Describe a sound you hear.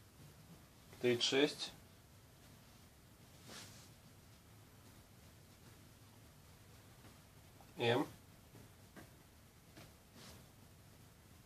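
Cotton shirts rustle and swish as they are laid down one on top of another.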